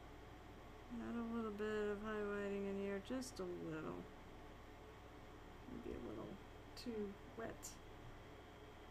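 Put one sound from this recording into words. A woman talks casually close to a microphone.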